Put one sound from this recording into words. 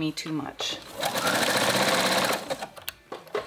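A sewing machine stitches rapidly with a steady whirring hum.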